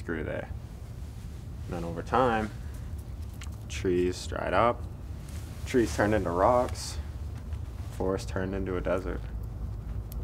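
A young man speaks quietly and slowly, close by.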